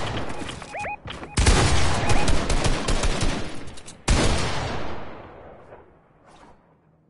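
Loud game sound effects rumble and crash, then fade away.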